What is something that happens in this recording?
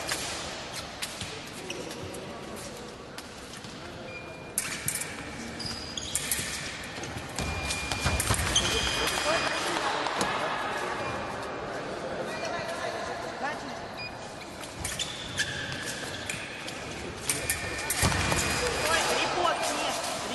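Footsteps squeak and thud on a hard floor in a large echoing hall.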